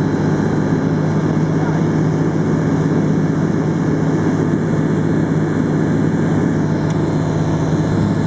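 A small propeller plane's engine drones loudly and steadily from inside the cockpit.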